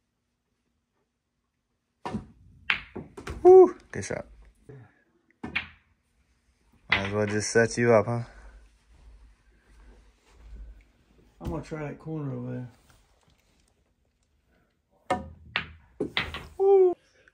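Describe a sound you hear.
Billiard balls clack together on a pool table.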